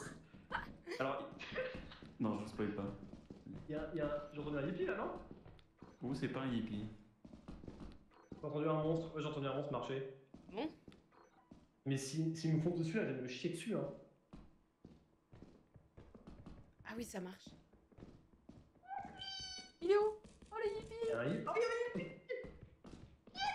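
A young woman talks with animation into a microphone, close up.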